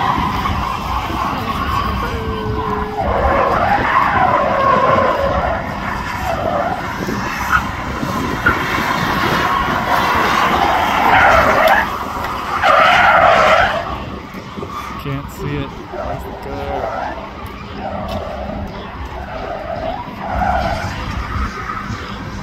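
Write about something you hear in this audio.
Tyres screech on the pavement.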